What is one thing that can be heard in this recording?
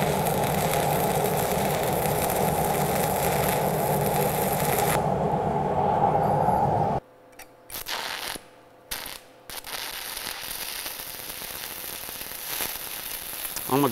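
A stick welding arc crackles and sizzles.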